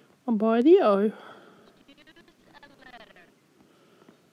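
A video game plays short electronic chiming tones.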